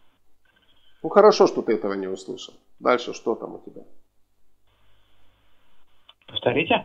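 A middle-aged man speaks calmly into a close microphone, with pauses.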